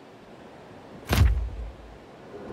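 A game menu opens with a sharp whoosh.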